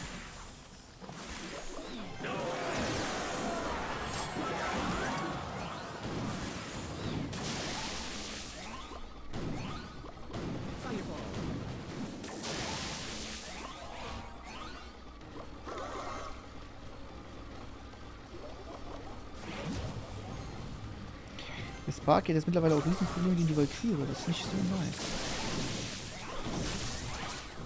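Video game sound effects chime and clash.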